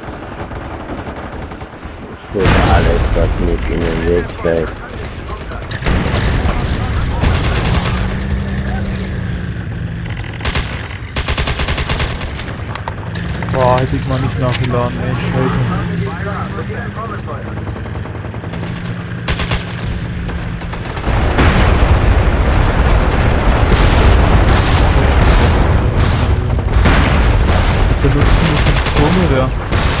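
Gunfire from a game crackles in rapid bursts.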